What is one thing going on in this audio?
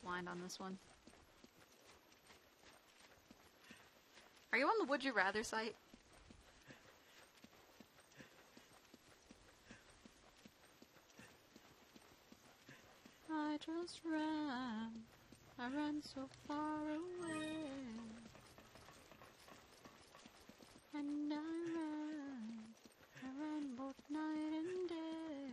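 Footsteps run over stone ground.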